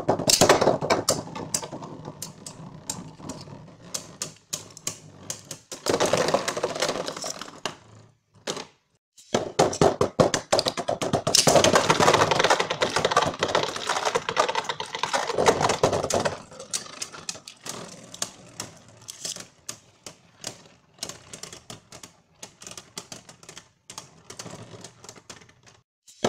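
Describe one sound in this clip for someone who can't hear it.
Spinning tops whir and scrape across a plastic dish.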